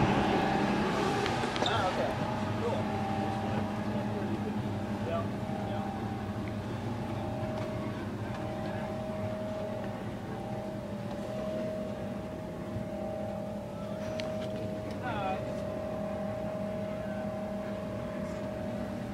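A steady electrical hum fills an aircraft cabin.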